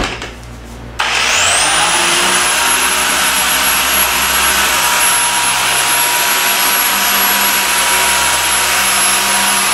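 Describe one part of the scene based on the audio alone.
An electric polisher spins up with a rising whine and then runs steadily with a high hum.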